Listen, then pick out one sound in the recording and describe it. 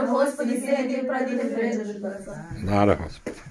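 A group of women sing together nearby.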